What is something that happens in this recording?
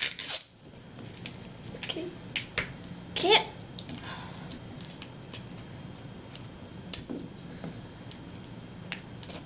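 Plastic wrapping crinkles and tears as a ball is unwrapped by hand.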